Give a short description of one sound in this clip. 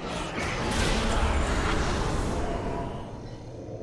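Magic blasts crackle and boom in a fight.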